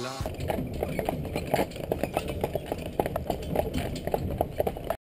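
Horse hooves clop steadily on a paved road.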